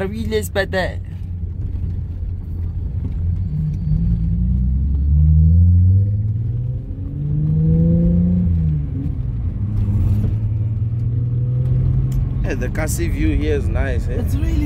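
A car engine hums and revs up through the gears.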